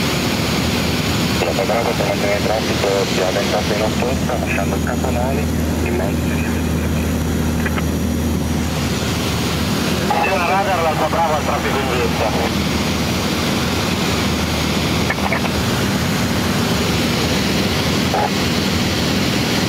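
A small plane's engine drones steadily from inside the cabin.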